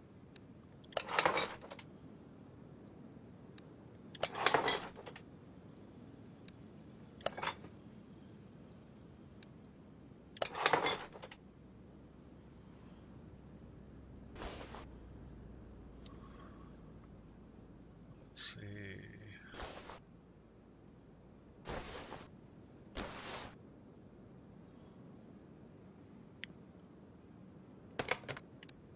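Short clunks sound as parts snap into place.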